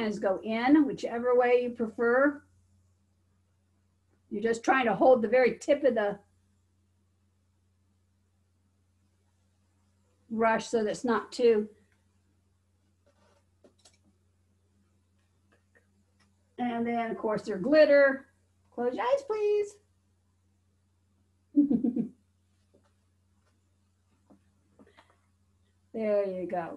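A middle-aged woman talks calmly and explains, close by, in short bursts with pauses.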